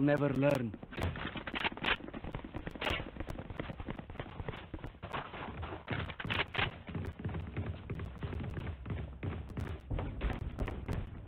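Game footsteps thud as a character runs.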